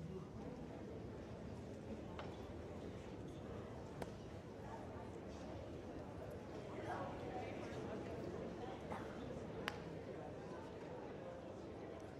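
A large audience murmurs and chatters in an echoing hall.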